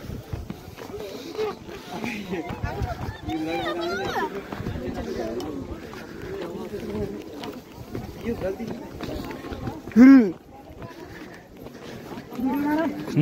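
Several men and women talk and call out nearby outdoors.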